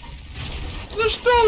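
A young man speaks into a headset microphone near the end.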